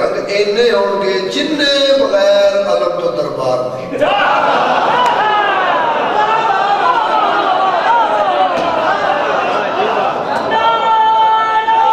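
A man recites loudly and with feeling into a microphone, heard through a loudspeaker in an echoing hall.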